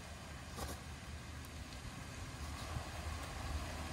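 A stone splashes into water.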